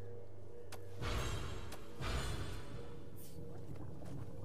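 Soft menu clicks tick a few times.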